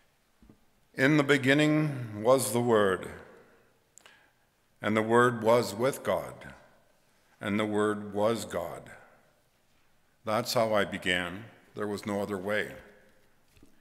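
An elderly man speaks calmly and slowly into a microphone, in a room with some echo.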